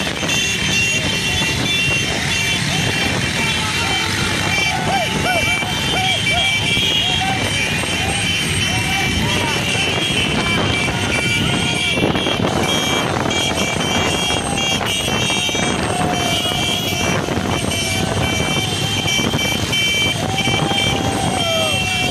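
Many motorcycle engines rumble and drone close by.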